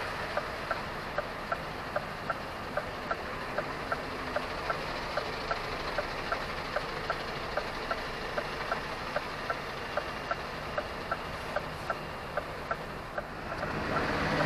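A truck's engine idles steadily.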